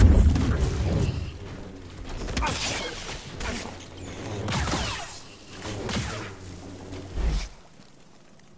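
Lightsabers hum and swoosh through the air.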